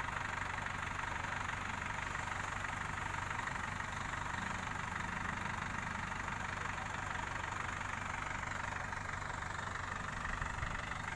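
A crane's diesel engine runs with a steady low rumble.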